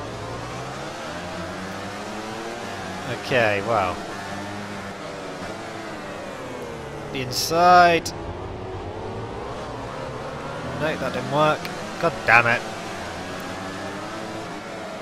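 A motorcycle engine whines at high revs, rising and falling as it shifts gears.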